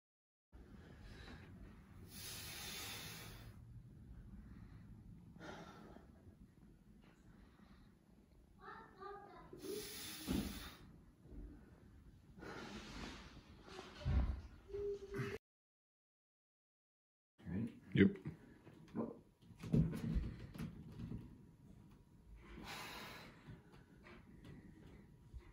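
A man breathes out hard as he exercises.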